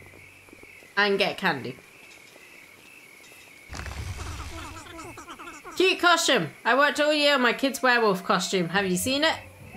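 A young woman talks animatedly into a microphone, close up.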